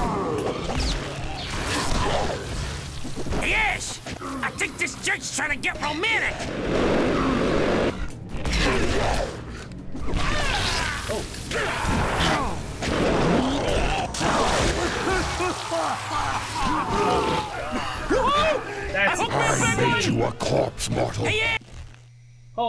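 Heavy blows thud in a close fight.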